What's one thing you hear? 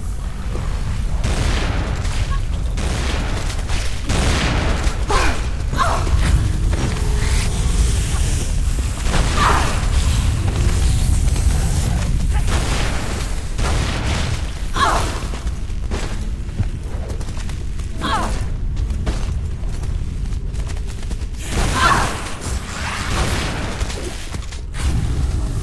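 Pistol shots crack rapidly again and again.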